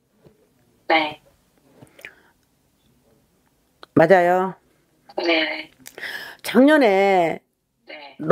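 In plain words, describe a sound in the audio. A middle-aged woman speaks with animation into a close microphone, in short bursts.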